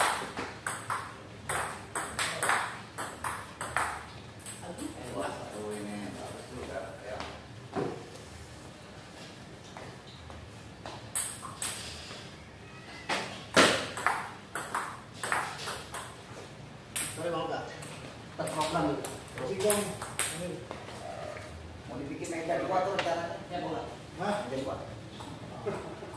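A table tennis ball clicks quickly back and forth off paddles and a table.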